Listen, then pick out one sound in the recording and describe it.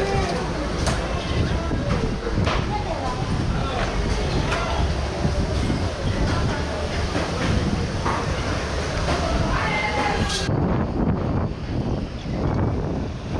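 Wind buffets loudly and steadily outdoors.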